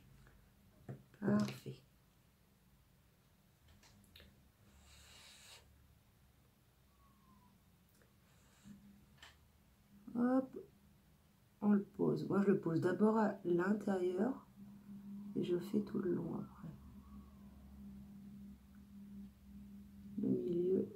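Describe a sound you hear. A woman talks calmly and close by, in short bursts.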